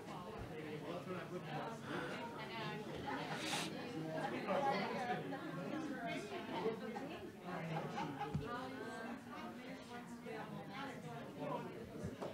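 Several adults chat at once in a room.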